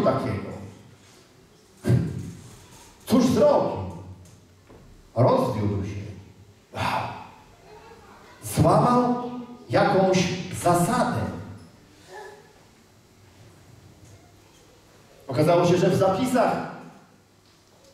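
A man speaks with animation in a reverberant hall, pausing between phrases.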